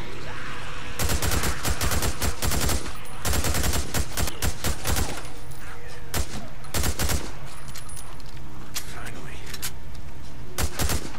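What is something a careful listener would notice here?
A rifle fires rapid bursts of shots close by.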